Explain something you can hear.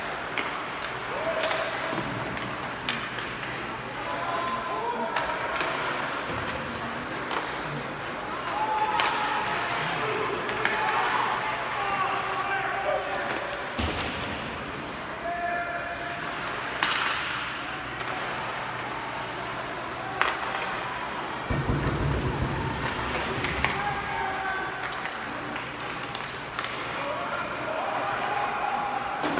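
Young players shout to each other across an echoing rink.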